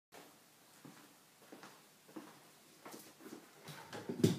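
Footsteps approach on a wooden floor.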